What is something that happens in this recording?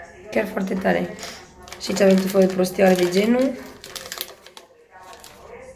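Plastic wrappers rustle and crinkle.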